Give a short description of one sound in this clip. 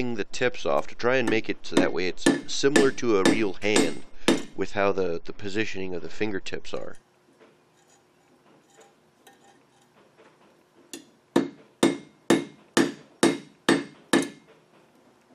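A hammer rings sharply on a metal anvil in quick, steady blows.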